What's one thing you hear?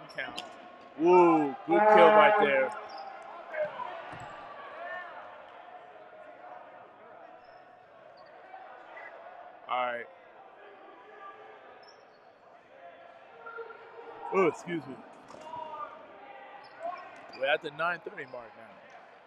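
Young men shout to each other across a large echoing gym.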